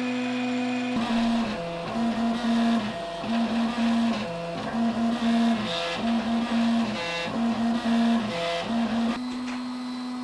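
Stepper motors whine in short, changing bursts as a printer head moves back and forth.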